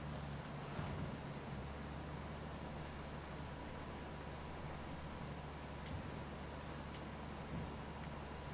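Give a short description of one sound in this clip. Tyres rumble over a dirt road, with occasional bumps.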